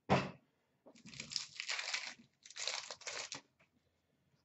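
A foil card pack crinkles and rustles in hands.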